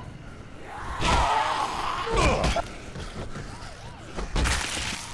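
Heavy blows thud.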